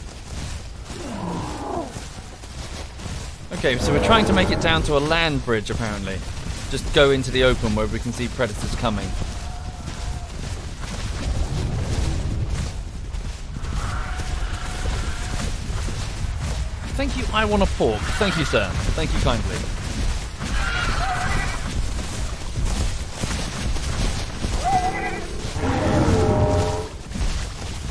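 Large creatures bellow with long, wavering honks close by.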